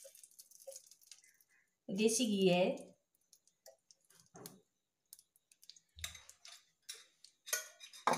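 A metal spoon scrapes and taps against a frying pan.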